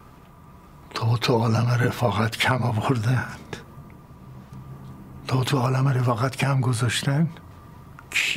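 An elderly man speaks slowly and calmly nearby.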